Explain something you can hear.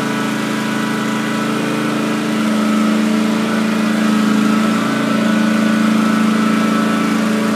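A riding lawn mower engine drones steadily nearby, growing slightly louder as it approaches.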